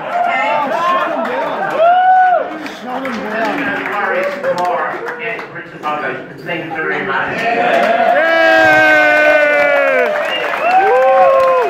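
A crowd of people laugh and chatter.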